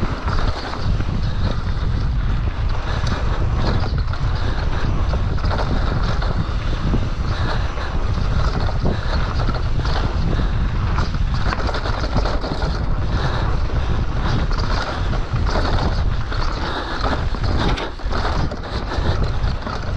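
A bicycle rattles and clatters over bumps and roots.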